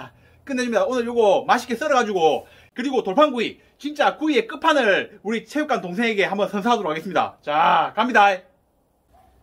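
A man speaks cheerfully and with animation, close by.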